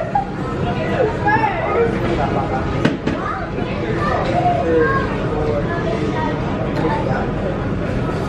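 Men and women chatter nearby in a busy indoor space.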